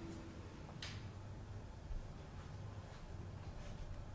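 A newspaper rustles briefly.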